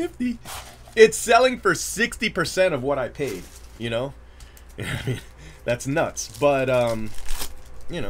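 A plastic wrapper crinkles as it is torn open.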